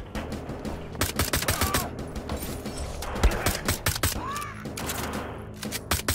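A pistol fires a quick series of sharp shots.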